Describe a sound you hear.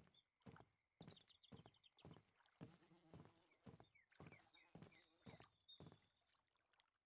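Footsteps thud on wooden planks.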